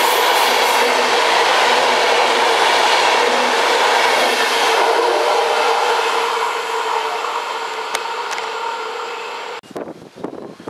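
A passing train roars by loudly with a steady hum, then fades into the distance.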